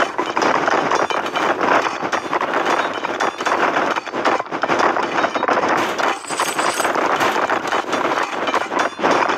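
Pickaxes clink repeatedly against gold ore.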